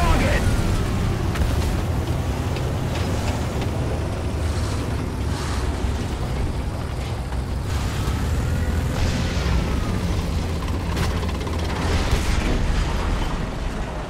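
Tank tracks clatter and squeak over rock.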